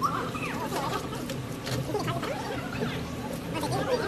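Water splashes and sloshes in a trough.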